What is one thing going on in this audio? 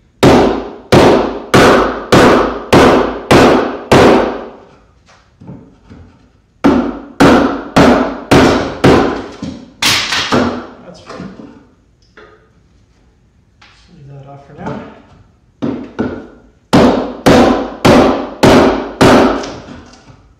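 A wooden mallet strikes a chisel in quick, steady blows, ringing through a small echoing room.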